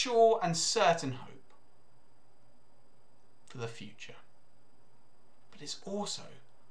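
A young man speaks calmly and close to a microphone, in short phrases with pauses.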